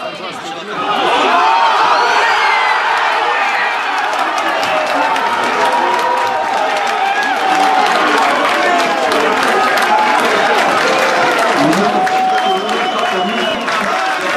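A crowd of spectators cheers loudly outdoors after a goal.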